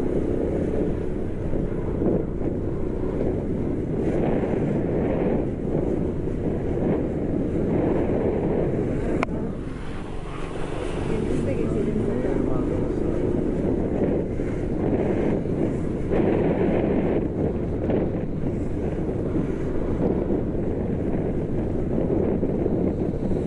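A motorbike engine rumbles steadily as it rides along.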